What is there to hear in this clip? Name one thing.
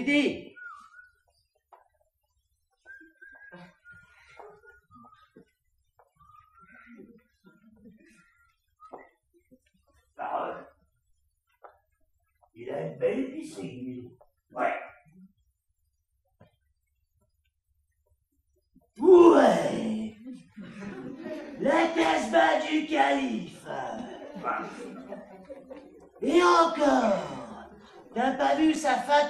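A man speaks loudly and theatrically in a room with some echo.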